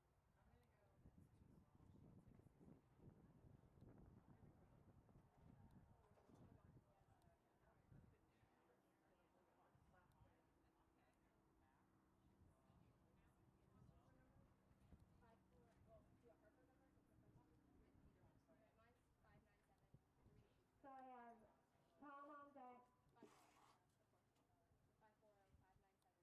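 A horse's hooves thud on soft dirt at a canter.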